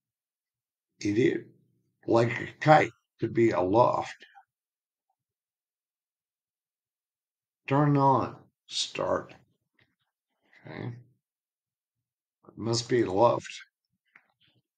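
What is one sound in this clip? A middle-aged man talks in short bursts, thinking aloud close to a microphone.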